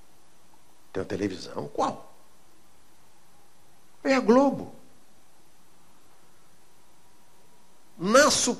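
An older man speaks slowly and deliberately into a microphone, with long pauses.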